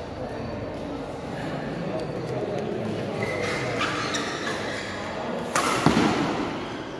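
A shuttlecock is struck hard with a racket in a large echoing hall.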